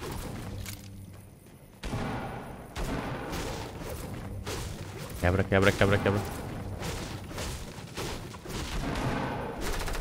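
Game sound effects of rapid building and pickaxe strikes clatter.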